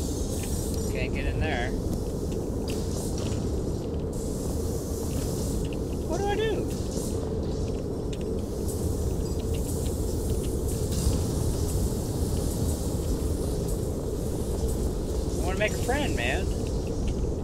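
A man talks briefly into a close microphone.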